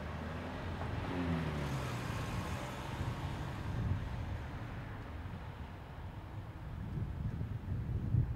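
A car pulls away and drives off.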